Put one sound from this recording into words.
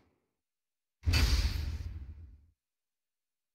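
A burst of magical light swells with a whoosh and fades.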